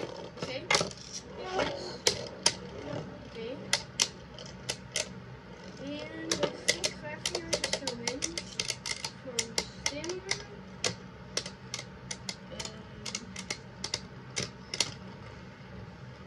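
Two spinning tops clash against each other with sharp clicks.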